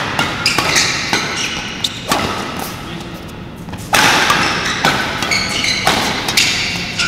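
Rackets strike a shuttlecock back and forth with sharp pops in an echoing hall.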